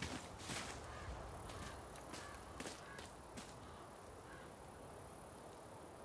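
Heavy footsteps splash through shallow water.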